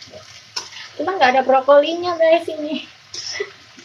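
A woman speaks nearby in a drawn-out, singsong voice.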